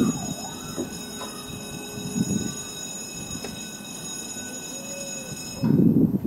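A road barrier arm swings upward with a mechanical whir.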